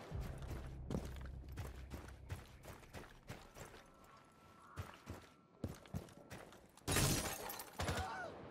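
Footsteps crunch quickly over snow and stone.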